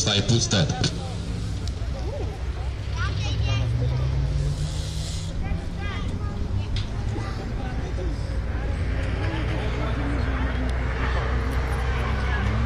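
A crowd of spectators chatters in the distance outdoors.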